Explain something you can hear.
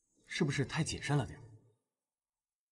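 A young man speaks questioningly.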